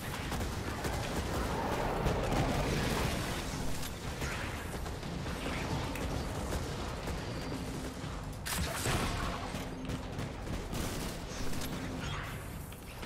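Gunfire and blasts crackle from a video game.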